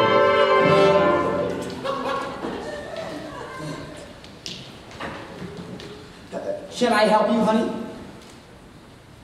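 Several men and women sing together on a stage, heard from a distance in a large hall.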